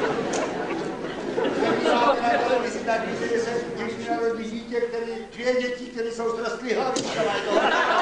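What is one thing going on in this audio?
Men talk loudly on a stage in a large hall.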